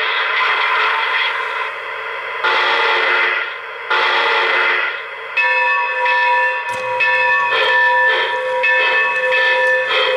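A model steam locomotive chuffs in rhythm.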